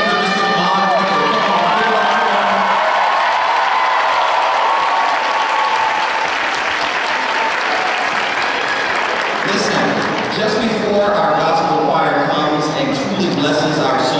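A woman speaks with animation through a microphone in a large echoing hall.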